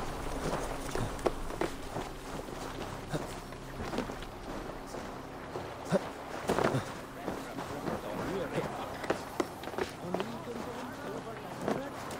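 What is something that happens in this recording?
Hands grip and scrape against wood while climbing.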